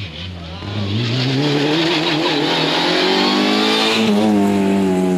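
Tyres hiss on the road as a car passes close by.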